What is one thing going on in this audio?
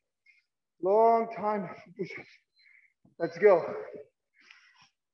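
A middle-aged man speaks in short bursts, heard through a microphone in an echoing room.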